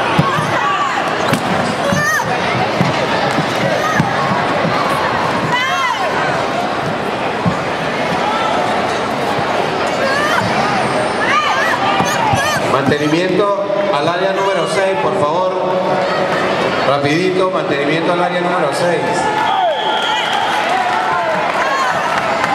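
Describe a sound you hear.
A large crowd chatters and shouts in an echoing hall.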